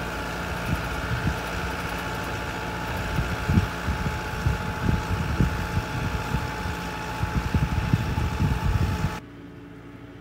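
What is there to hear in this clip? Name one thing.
A diesel tractor works under load close by.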